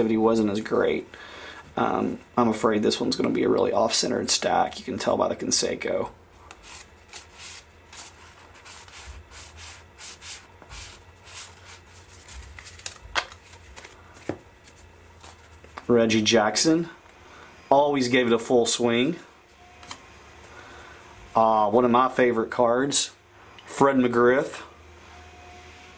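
Stiff cards slide and flick against each other.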